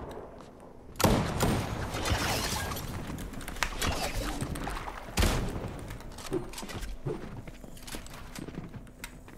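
Video game building pieces thud and clatter into place in quick bursts.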